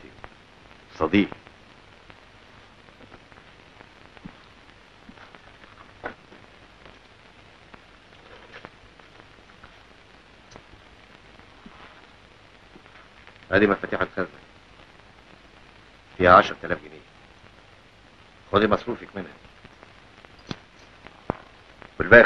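A man speaks calmly, close by, in short bursts.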